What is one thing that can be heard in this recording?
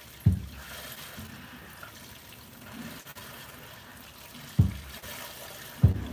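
Milk squirts into a plastic bucket in short bursts.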